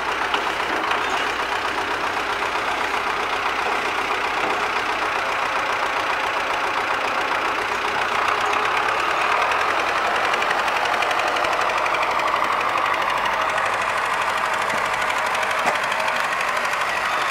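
A tractor engine chugs steadily close by.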